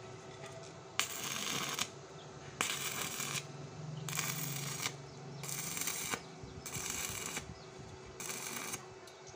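An electric welder crackles and sizzles in short bursts.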